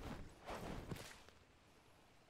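Footsteps pad quickly over grass and earth.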